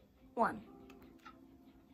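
Buttons click softly on a handheld game controller.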